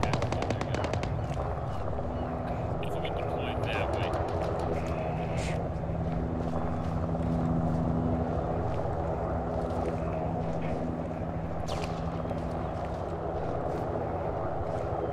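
Footsteps crunch on dry, rocky ground.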